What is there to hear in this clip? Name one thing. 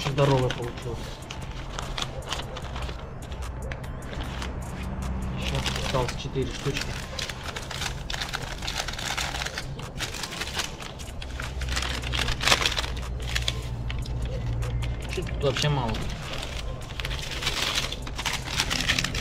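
Newspaper and paper rustle and crinkle close by as they are handled.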